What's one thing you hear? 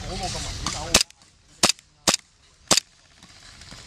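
A gun fires single sharp shots.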